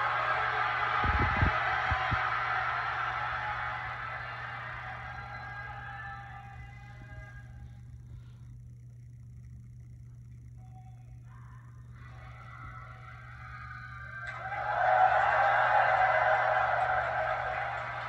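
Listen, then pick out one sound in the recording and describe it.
A crowd cheers and applauds loudly through a television's speakers.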